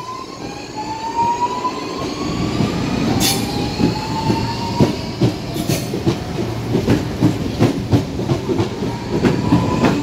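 Train wheels clack rhythmically over rail joints, speeding up.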